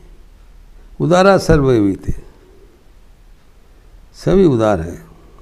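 An elderly man speaks calmly, close to a clip-on microphone.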